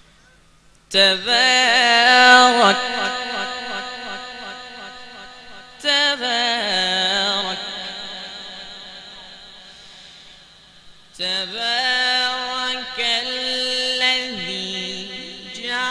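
A young man chants slowly and melodically into a microphone, heard loud through loudspeakers with echo.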